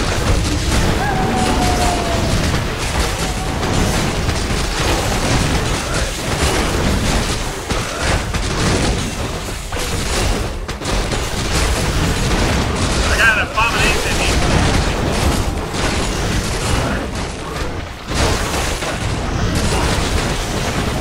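Swords clash and spells crackle in a dense game battle.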